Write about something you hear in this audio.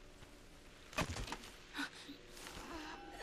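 Hands scrape and rustle against tree bark.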